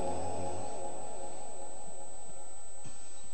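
An elderly man chants in a long, wavering voice through a microphone.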